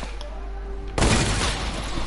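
Gunshots crack in a video game.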